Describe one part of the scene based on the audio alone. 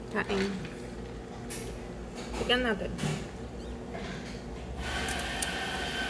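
A young woman sips a drink noisily through a straw.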